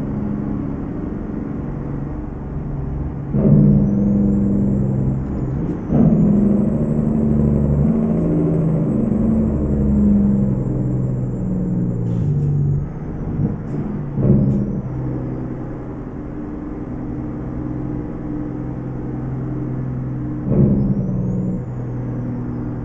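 A truck engine rumbles steadily, its pitch shifting through gear changes.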